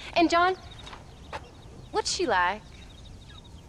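A woman calls out warmly, heard close.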